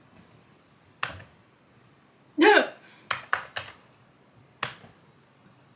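Keys clack a few times on a keyboard.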